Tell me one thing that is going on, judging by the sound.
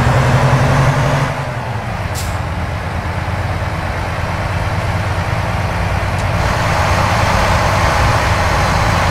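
A truck engine rumbles steadily at a low pitch.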